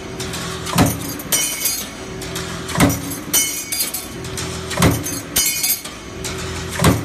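A power press thumps heavily at a steady pace.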